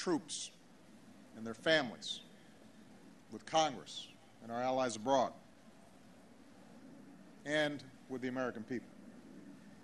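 A man speaks slowly and formally through a microphone and loudspeakers outdoors, with pauses between phrases.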